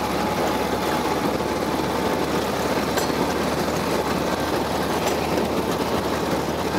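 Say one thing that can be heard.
A motorcycle engine hums steadily as it rolls downhill.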